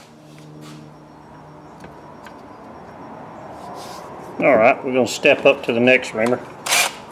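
Small metal clicks sound as a man handles a gun barrel.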